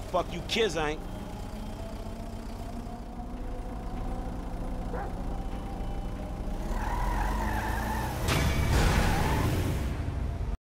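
A van engine hums steadily.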